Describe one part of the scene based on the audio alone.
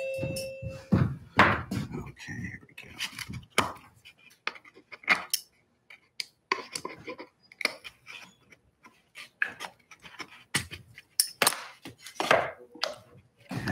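A small blade scrapes and clicks against wood.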